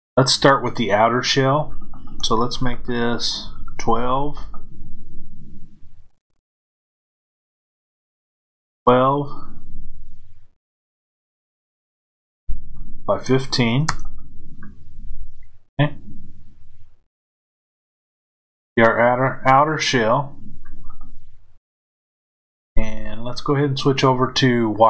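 A middle-aged man talks calmly into a close microphone, pausing between phrases.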